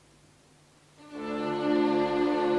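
A string orchestra starts playing loudly in a large, echoing hall.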